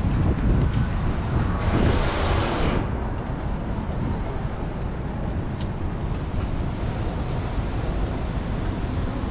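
A busy street murmurs outdoors.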